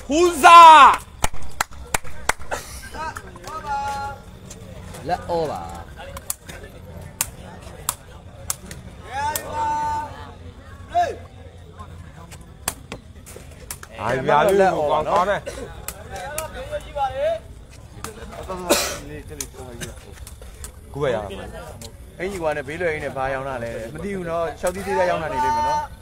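A crowd of young men shouts and cheers nearby, outdoors.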